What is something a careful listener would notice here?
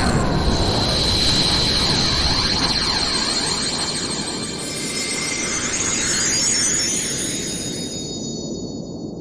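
A bright energy beam hums and shimmers with a high ringing tone.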